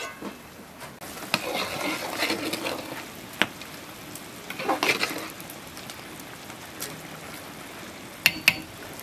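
A metal ladle stirs and scrapes inside a large pot of bubbling liquid.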